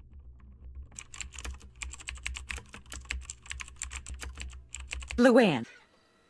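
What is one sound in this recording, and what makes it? Computer keys clatter rapidly under typing fingers.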